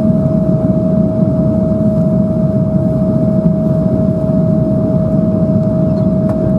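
Jet engines roar steadily inside an airplane cabin, with a constant high hum.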